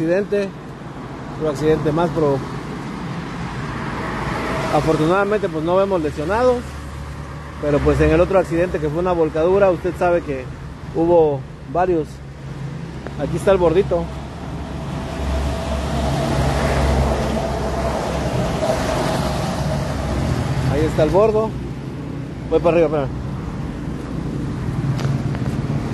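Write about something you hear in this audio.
Traffic hisses past on a wet road.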